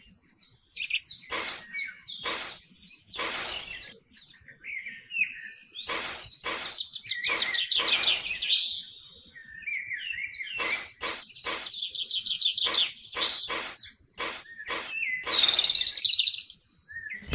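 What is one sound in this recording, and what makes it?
A small trowel scrapes and scoops damp sand.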